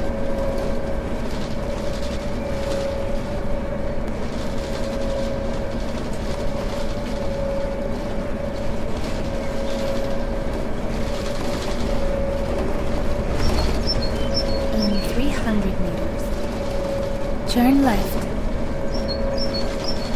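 A bus engine hums steadily as it drives along a bumpy road.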